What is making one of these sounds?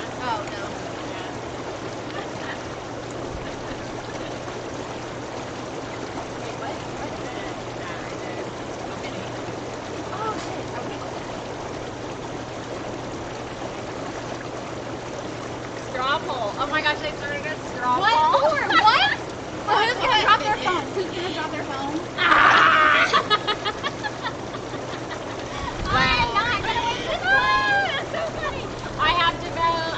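Water bubbles and hisses steadily in a hot tub.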